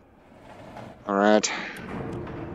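A button clicks.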